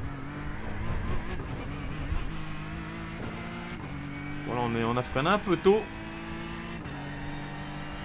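A racing car engine drones steadily, its pitch stepping with each gear change.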